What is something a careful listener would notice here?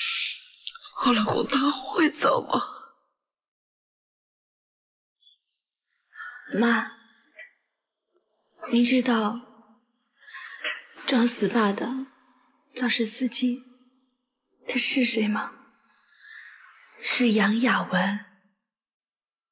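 A middle-aged woman cries and speaks in a sobbing voice.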